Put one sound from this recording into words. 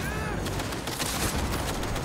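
Gunfire bursts out loudly.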